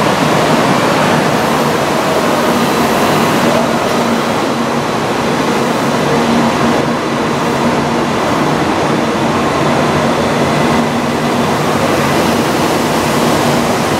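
A train's motors whine with a steady hum.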